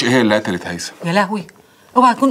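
A middle-aged woman speaks with feeling, close by.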